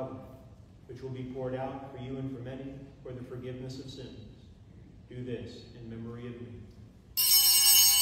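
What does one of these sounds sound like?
A man speaks slowly and calmly through a microphone in an echoing hall.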